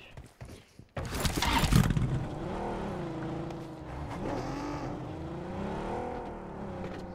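A car engine starts and hums, rising and falling as it drives.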